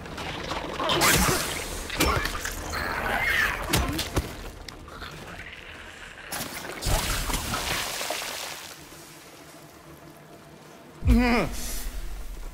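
A metal pipe strikes flesh with heavy thuds.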